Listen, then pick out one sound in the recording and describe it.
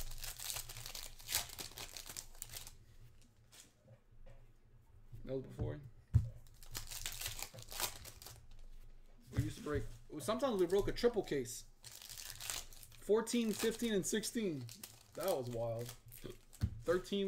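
Foil wrappers crinkle and rustle as they are torn open.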